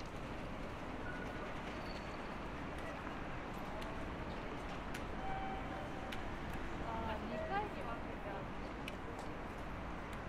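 A steady hum of city traffic and crowd noise fills the outdoor air.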